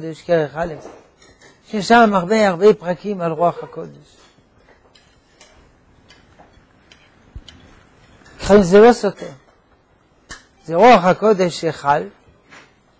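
An elderly man speaks calmly into a clip-on microphone, with pauses.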